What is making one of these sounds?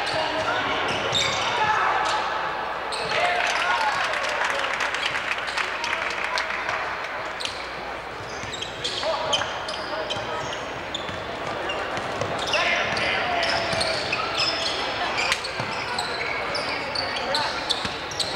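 A crowd of spectators cheers and shouts.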